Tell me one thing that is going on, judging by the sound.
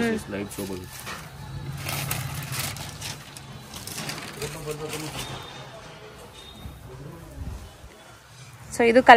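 Silk cloth rustles as it is unfolded and laid flat.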